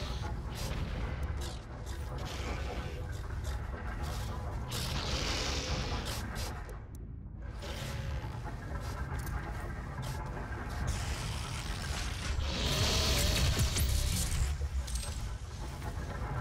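Guns fire in bursts with loud blasts.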